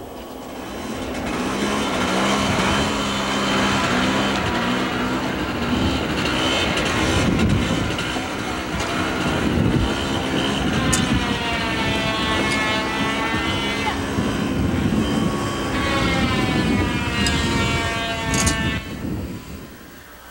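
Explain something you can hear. A snowmobile engine roars as it drives over snow.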